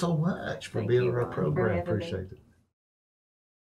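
A woman speaks warmly close to a microphone.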